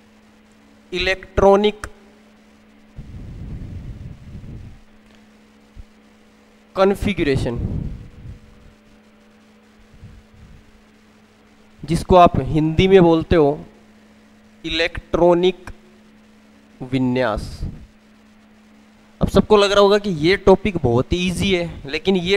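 A young man speaks calmly into a clip-on microphone, in short bursts.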